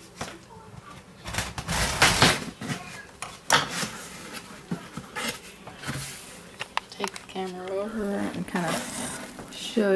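Cardboard box flaps rustle and scrape as they are opened.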